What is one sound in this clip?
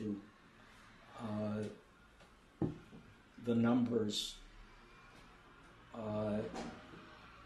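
An elderly man speaks calmly in short phrases.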